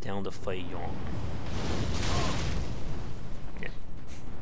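A fireball roars and bursts.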